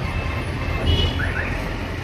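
An auto rickshaw engine rattles close by.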